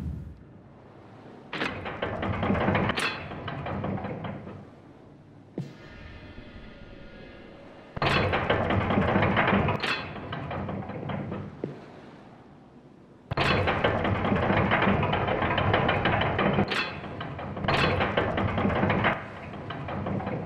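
A metal lever clanks as it is pulled.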